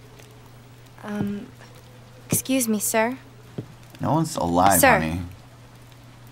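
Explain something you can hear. A young woman speaks hesitantly and softly.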